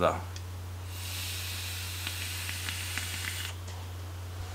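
A young man exhales a long breath.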